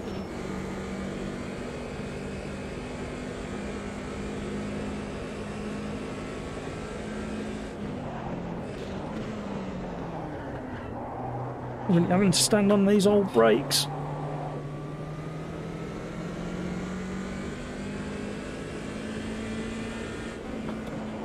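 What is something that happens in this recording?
A car engine revs up and down as it races.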